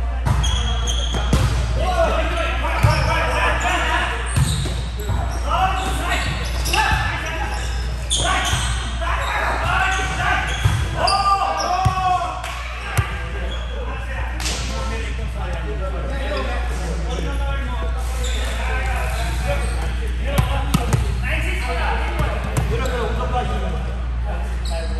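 Men call out and talk across a large echoing gym.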